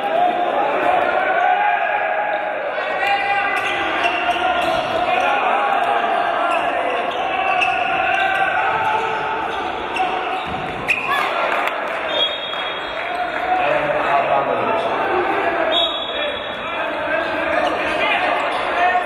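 Players shout and call out across a large echoing hall.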